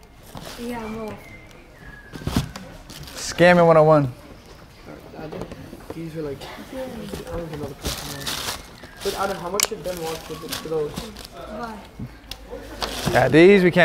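Tissue paper rustles as a shoebox is unpacked.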